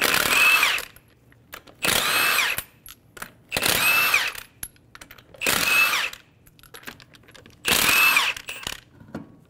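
A cordless impact wrench whirs and hammers on lug nuts in short bursts.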